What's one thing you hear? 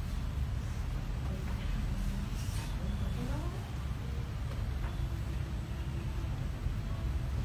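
Hands knead and press on a man's bare back.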